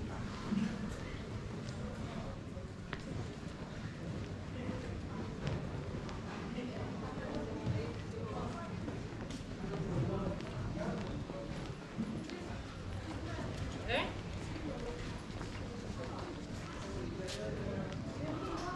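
Footsteps tap on stone paving close by.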